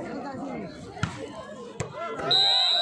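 A volleyball is struck with a hand thud.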